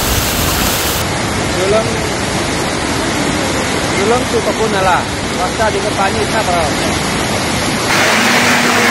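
Muddy floodwater rushes and roars.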